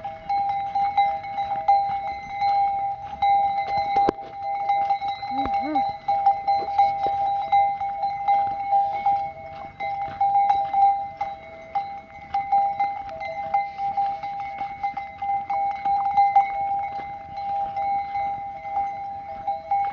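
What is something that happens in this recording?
Hooves patter on a dusty dirt track.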